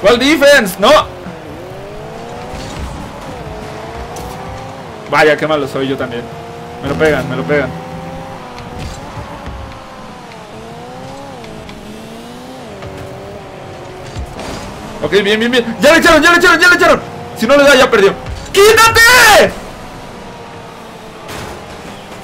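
Engines of game cars hum and whine with shifting pitch.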